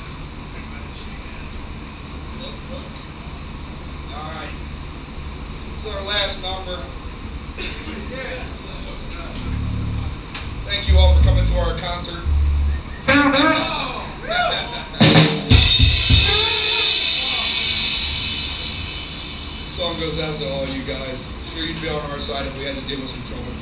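A band plays music loudly.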